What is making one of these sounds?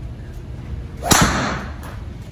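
A golf club strikes a ball with a sharp whack.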